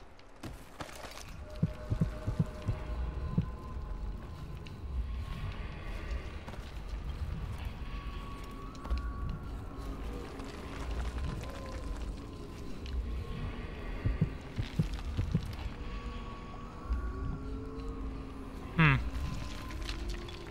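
Footsteps thud and crunch over wooden planks and rubble.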